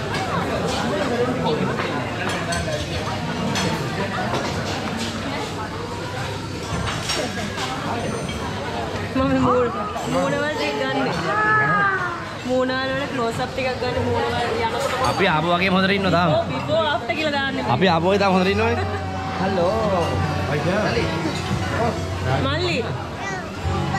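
A crowd of people chatter in a busy room.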